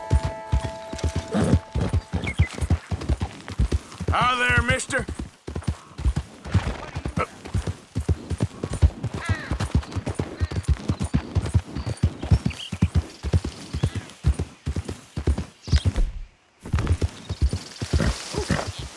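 A horse gallops steadily, its hooves thudding on a dirt path.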